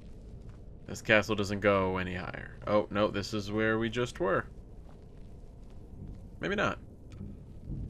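A man talks into a microphone with animation, close by.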